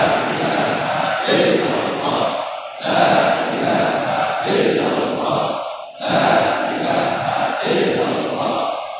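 A large group of men chants together in unison, echoing in a large hall.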